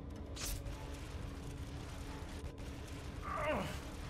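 A heavy crate scrapes across a metal grate.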